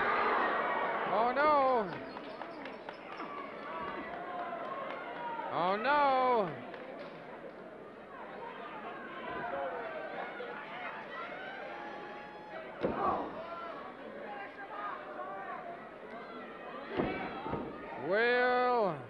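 A crowd chatters and murmurs in a large hall.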